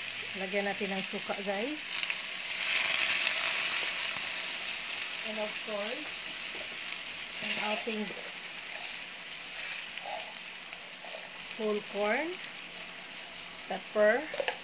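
Shrimp sizzle and crackle steadily in a hot pan.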